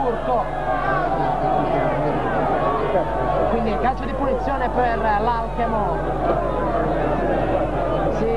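Several men argue loudly on an open field.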